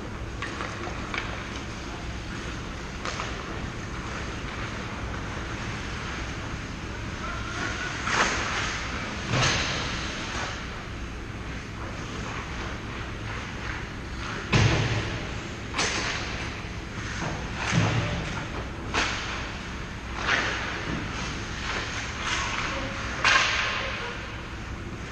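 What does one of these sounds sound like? Skate blades scrape and hiss across ice in a large echoing hall.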